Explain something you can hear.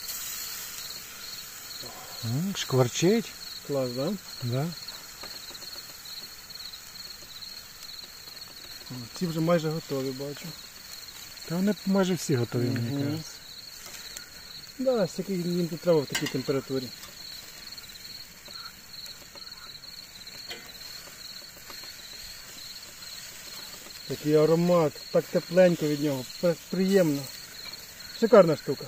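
Meat sizzles steadily on a hot grill.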